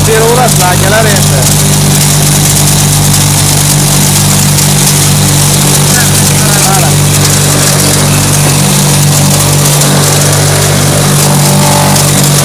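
A chopping machine whirs and rattles as it blows out shredded straw with a rushing hiss.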